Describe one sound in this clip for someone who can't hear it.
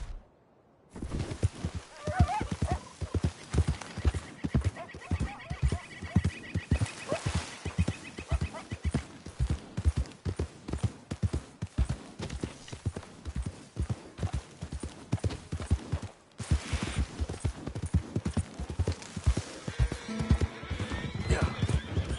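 Horse hooves pound steadily on soft ground at a gallop.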